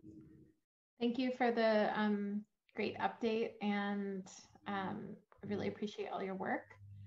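A third woman speaks calmly and thoughtfully over an online call.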